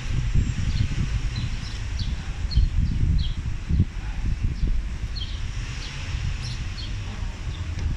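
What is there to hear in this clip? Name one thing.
A cloth rubs across a car window.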